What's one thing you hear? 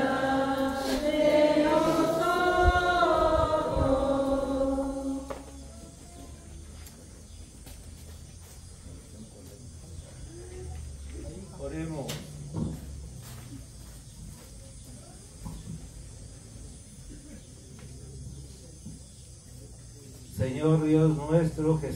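A man chants in a slow, singing voice through a loudspeaker outdoors.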